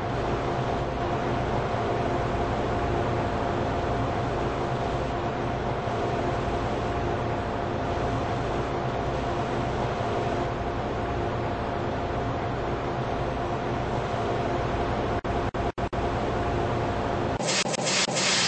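A train rumbles steadily as it rolls along.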